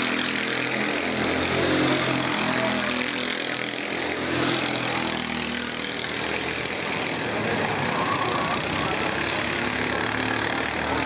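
A kart engine buzzes loudly, its pitch rising and falling as it speeds up and slows through the turns.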